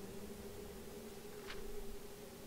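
A paper page turns with a dry rustle.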